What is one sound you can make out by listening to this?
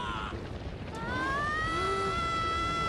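A young boy cries out in a long yell.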